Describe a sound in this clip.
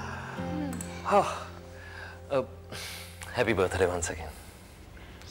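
A young man talks and laughs nearby.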